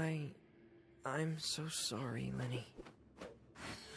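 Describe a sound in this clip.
A sword swishes as it is drawn.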